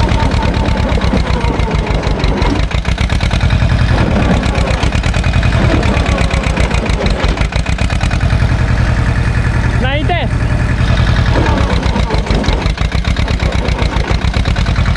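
A small tractor's diesel engine chugs loudly and steadily.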